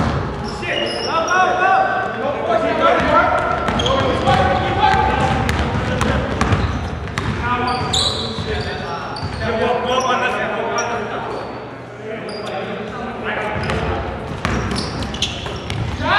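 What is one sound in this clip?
Young men shout and call out to one another during play.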